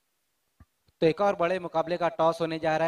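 A man speaks into a microphone through a loudspeaker.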